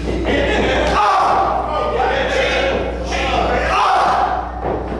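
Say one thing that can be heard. A wrestler's boots stomp hard on a ring mat.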